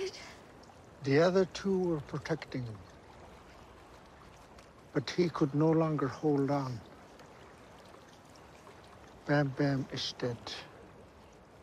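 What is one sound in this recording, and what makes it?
An older man speaks calmly and slowly, close by.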